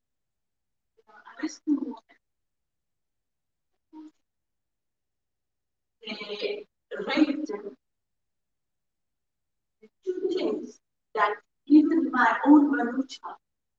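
A woman speaks calmly into a microphone, in short bursts with pauses.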